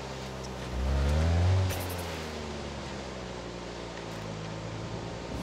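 A sports car engine roars and revs up, then settles.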